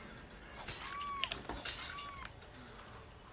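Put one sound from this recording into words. A blade slashes into a person.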